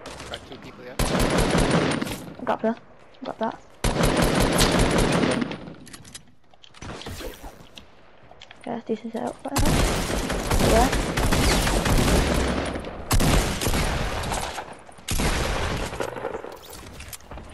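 Guns fire in rapid, loud bursts.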